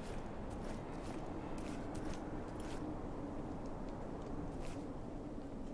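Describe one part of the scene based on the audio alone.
Footsteps thud on stone steps.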